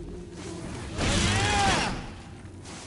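A fiery blast bursts with a loud whoosh.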